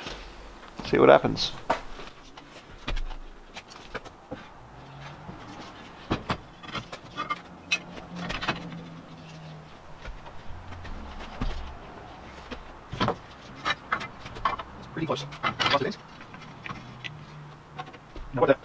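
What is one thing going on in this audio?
Metal clanks and knocks sharply.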